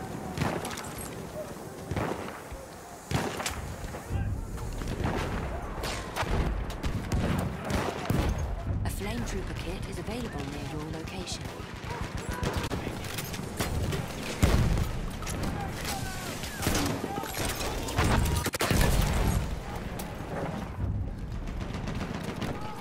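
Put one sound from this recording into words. Gunshots crack in short bursts, close by.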